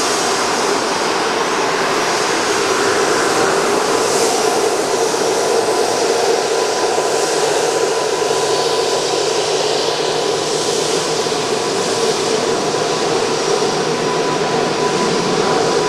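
Jet engines roar and whine steadily as a small jet taxis past close by.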